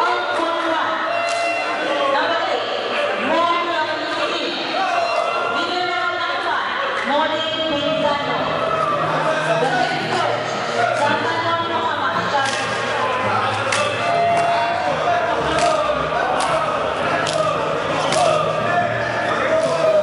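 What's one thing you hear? Young men cheer and chant loudly in an echoing hall.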